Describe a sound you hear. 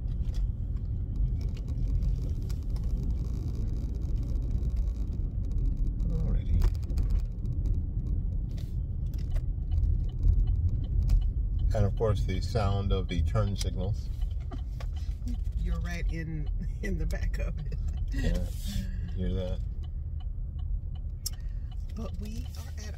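A car's engine and tyres rumble low and steady from inside the car.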